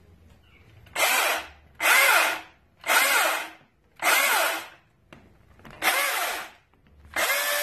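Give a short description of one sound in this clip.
A cordless chainsaw whirs in short revving bursts.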